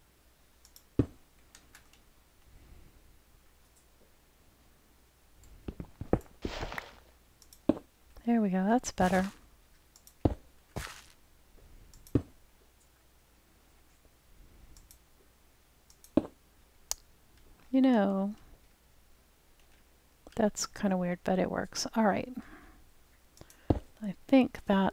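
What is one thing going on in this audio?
Stone blocks are set down with short, dull knocks, one after another.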